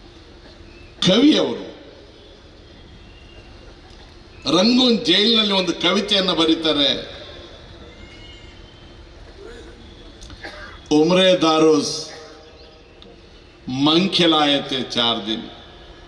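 An elderly man speaks forcefully into a microphone, heard through loudspeakers with an outdoor echo, in short bursts with pauses.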